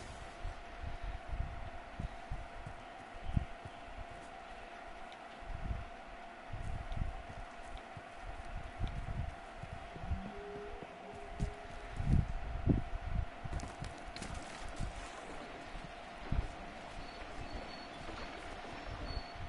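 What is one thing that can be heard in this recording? Footsteps tread steadily through grass.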